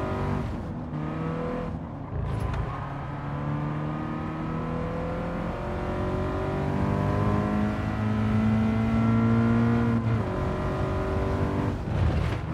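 A car engine revs high and drops as gears shift.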